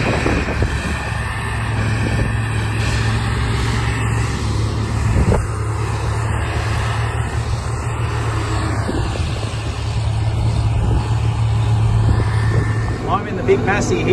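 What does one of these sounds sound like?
A large tractor engine rumbles steadily nearby.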